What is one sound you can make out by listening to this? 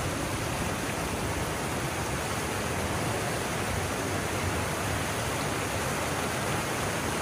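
Water rushes and gushes steadily through a narrow gap.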